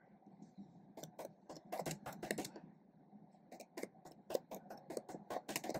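Keys clatter on a keyboard in quick taps.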